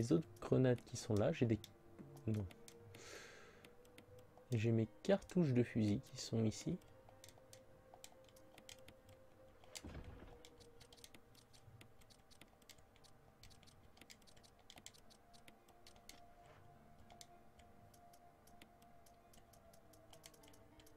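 Short electronic ticks sound as a game menu selection moves.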